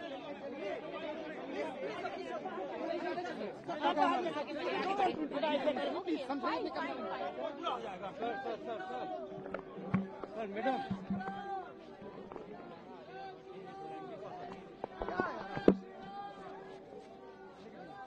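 A crowd of men and women talks and calls out close by.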